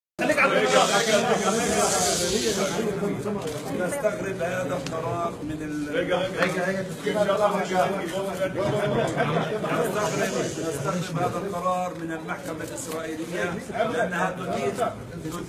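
A middle-aged man speaks firmly into microphones close by.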